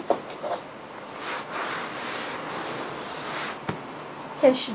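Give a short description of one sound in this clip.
A hand rubs across a rug with a soft scraping.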